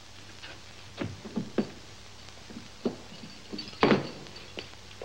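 A heavy cell door clanks and slams shut.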